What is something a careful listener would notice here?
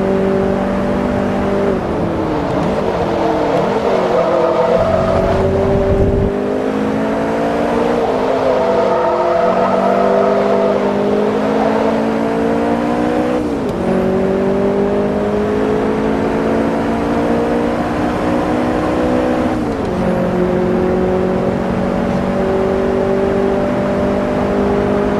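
A racing car engine roars steadily, dropping in pitch with each gear change and climbing again as it speeds up.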